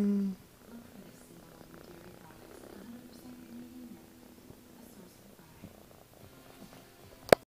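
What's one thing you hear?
A cat purrs softly up close.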